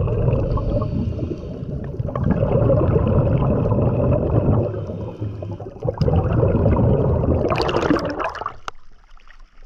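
Water rushes and bubbles loudly, heard from underwater.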